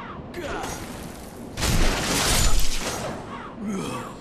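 A blade swings and strikes with a loud crash.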